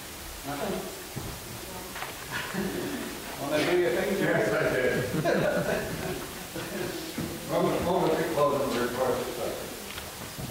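A man speaks steadily through a microphone in a large echoing room.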